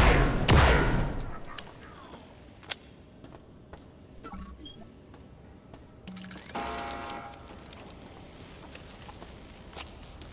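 Footsteps clank on a metal grating floor.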